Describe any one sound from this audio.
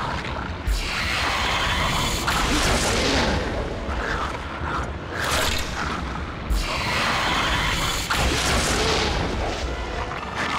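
Magic spells burst with a loud whooshing roar.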